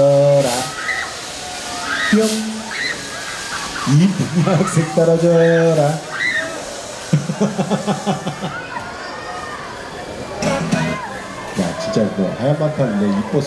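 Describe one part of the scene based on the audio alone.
Young women shriek and laugh loudly close by.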